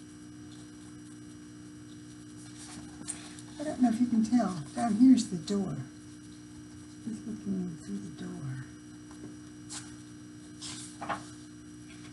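Book pages rustle as they turn.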